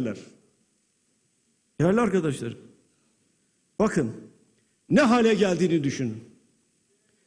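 An elderly man speaks forcefully into a microphone in a large echoing hall, with short pauses.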